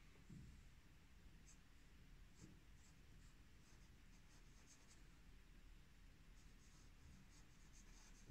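A fountain pen nib scratches softly across paper.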